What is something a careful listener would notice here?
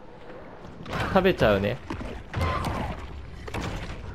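A shark bites its prey with a muffled underwater crunch.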